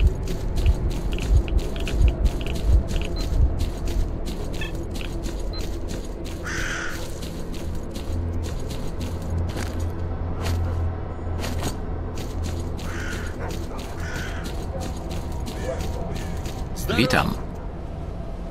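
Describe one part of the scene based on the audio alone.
Footsteps crunch steadily over dry grass and earth.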